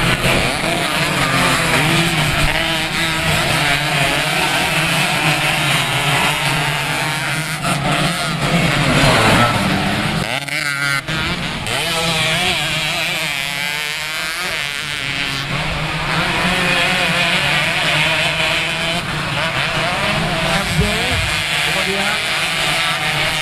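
Dirt bike engines rev loudly and buzz as the bikes race around a track.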